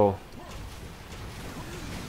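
An explosion bursts nearby.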